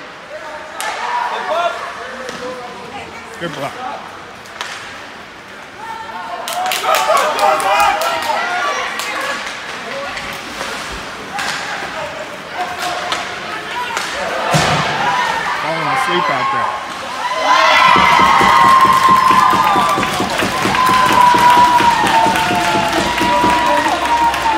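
A crowd of spectators in an echoing rink calls out and cheers.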